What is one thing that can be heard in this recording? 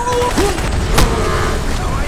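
A rifle fires a loud shot close by.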